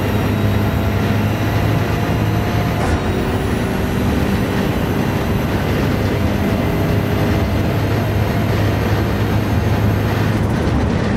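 A racing car's engine roars at high revs as it speeds along.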